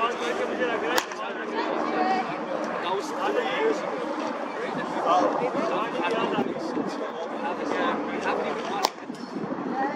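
A cricket bat cracks against a ball.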